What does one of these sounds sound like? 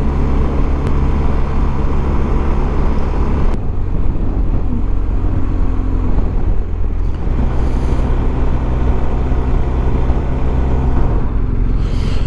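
Wind rushes past a rider.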